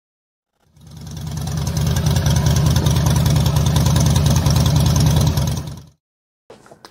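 A motorcycle engine rumbles loudly at idle, close by.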